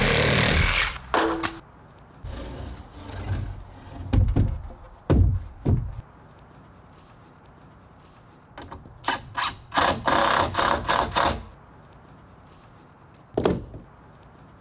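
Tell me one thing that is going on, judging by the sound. Heavy wooden beams knock and thump against each other.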